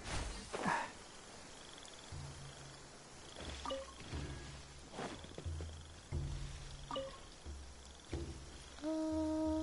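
Quick footsteps rustle through grass.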